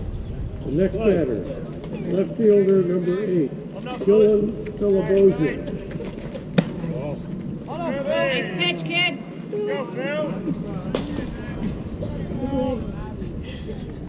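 Men call out and chatter across an open outdoor field.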